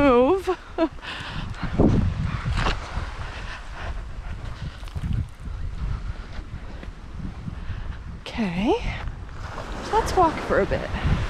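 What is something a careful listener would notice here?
Small waves lap softly at the shore.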